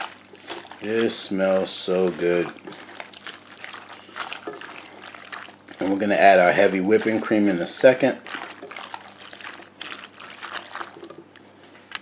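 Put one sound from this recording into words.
A spatula stirs and scrapes through thick pasta in a metal pot.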